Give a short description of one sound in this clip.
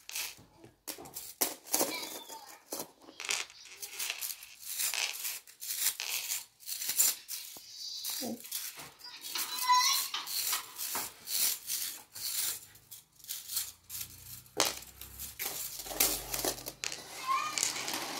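A plastic spring toy clicks and rattles as its coils slap together.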